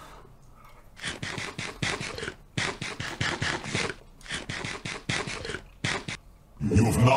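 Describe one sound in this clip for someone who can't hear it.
A man blows on a hot spoonful.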